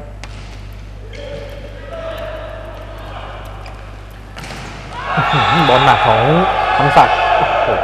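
A volleyball is struck by hand during a rally in an echoing indoor hall.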